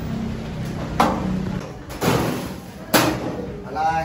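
A glass door bangs shut.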